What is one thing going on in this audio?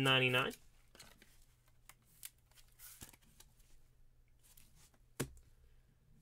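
Cards and a plastic case click and rustle softly in handling.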